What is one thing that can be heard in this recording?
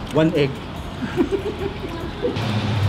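A young woman makes appreciative sounds while eating.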